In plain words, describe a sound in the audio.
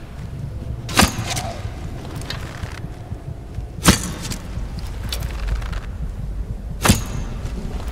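A bowstring snaps sharply as arrows are loosed, again and again.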